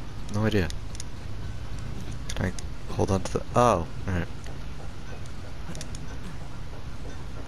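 Large metal gears grind and clank as they turn.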